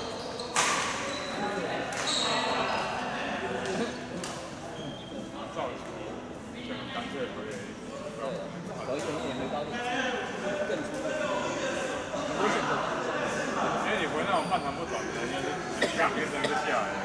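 Voices of young men and women chatter and call out in a large echoing hall.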